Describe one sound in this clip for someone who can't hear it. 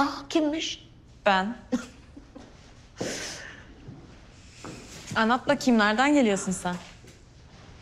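A young woman talks cheerfully nearby.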